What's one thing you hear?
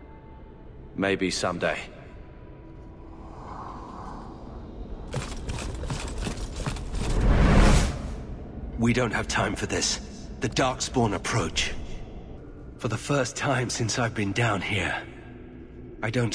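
A man speaks calmly and seriously, close by.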